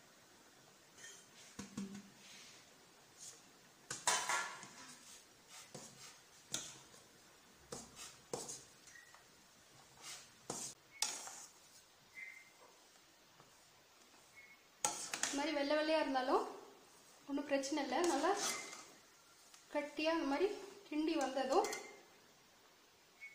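A metal spoon scrapes and clinks against a steel pan.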